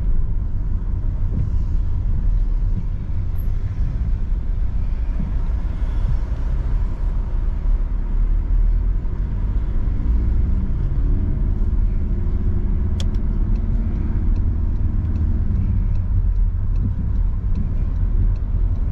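A car engine hums steadily with road rumble from inside the car.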